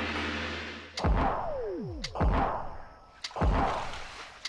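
Loud explosions boom one after another.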